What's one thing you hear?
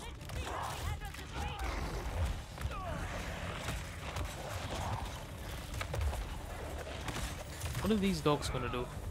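Heavy blows thud and crash in a fierce brawl.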